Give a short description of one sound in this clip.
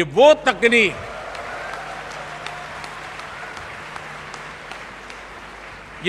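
A large audience applauds in a hall.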